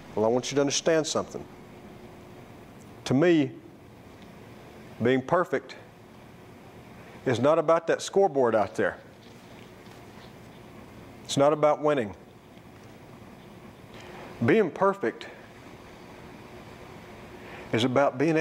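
A middle-aged man speaks forcefully in short bursts, with pauses between them, in a room that echoes slightly.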